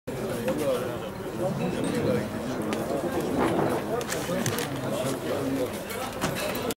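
A crowd of men chatter at once, outdoors.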